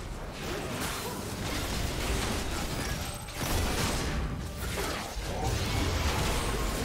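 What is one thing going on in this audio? Magic spells crackle and whoosh in a fantasy battle.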